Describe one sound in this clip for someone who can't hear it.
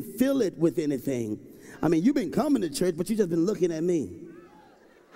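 A man speaks loudly and with animation into a microphone in a large echoing hall.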